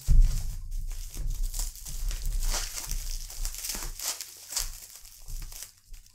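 Scissors snip through plastic tape.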